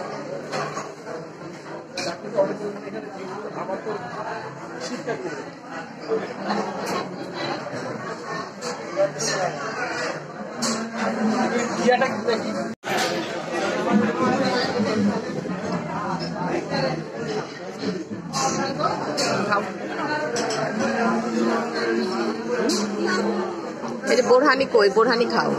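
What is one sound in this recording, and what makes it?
Many adults talk and chatter nearby.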